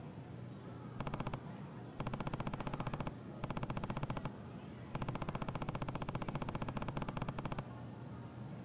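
Rapid electronic blips tick in short bursts.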